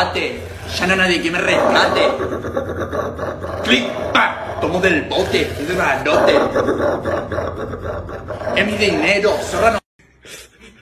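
A dog howls and barks.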